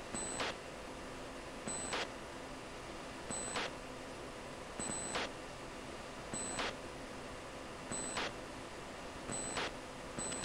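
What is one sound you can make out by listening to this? A warning tone beeps again and again at an even pace.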